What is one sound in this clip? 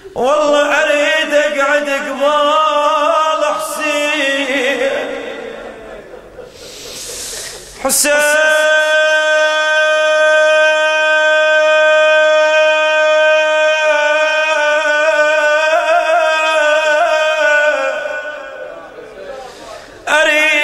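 A man chants a mournful lament into a microphone, holding long notes.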